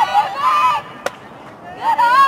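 A ball smacks sharply into a catcher's mitt.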